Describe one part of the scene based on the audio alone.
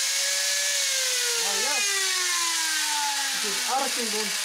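An angle grinder whines as its motor winds down, its pitch slowly falling.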